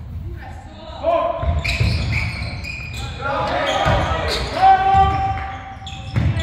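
Young men shout to each other during a basketball game.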